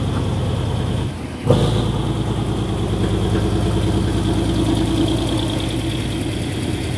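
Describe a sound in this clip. A train rolls slowly along the track with rhythmic clatter.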